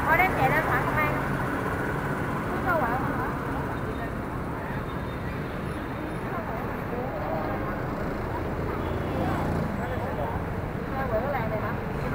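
Motorbike engines idle and rumble close by.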